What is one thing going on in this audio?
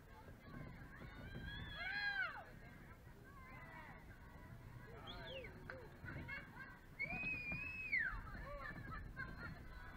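Young female players shout and call out across an open outdoor field.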